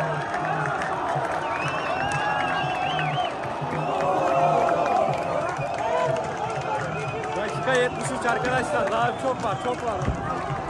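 A stadium crowd cheers and chants loudly.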